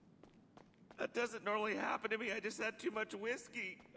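Footsteps thud up wooden stairs.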